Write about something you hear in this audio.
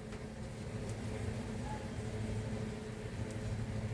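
A spatula stirs and scrapes in a frying pan.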